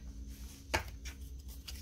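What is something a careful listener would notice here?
A soft tap sounds as a page is set down.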